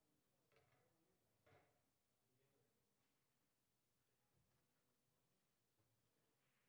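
A crowd murmurs quietly in the distance in a large hall.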